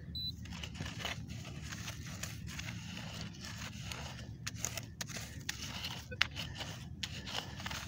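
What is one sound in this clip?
A small hand tool scrapes and scratches through dry, stony soil.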